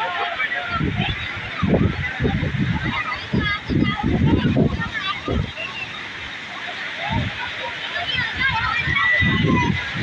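Floodwater rushes steadily.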